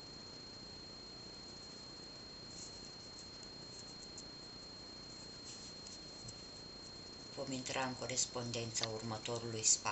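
A crochet hook softly ticks and rustles through thread.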